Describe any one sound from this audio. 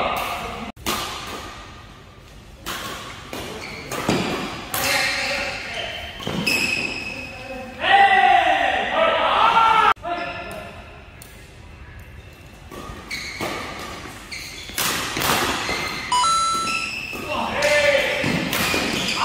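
Shuttlecocks are struck sharply by rackets in a fast rally.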